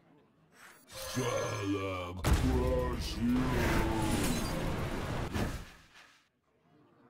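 A game spell whooshes and crackles loudly.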